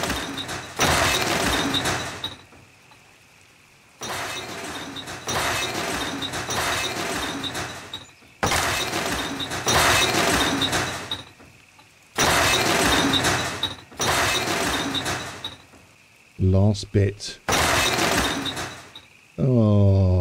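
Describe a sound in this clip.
Loud rushing, crackling bursts of fire and debris come and go.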